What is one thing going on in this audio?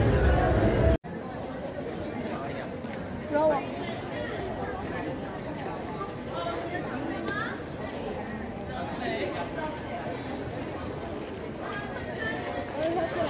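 A crowd of young men and women chatter nearby outdoors.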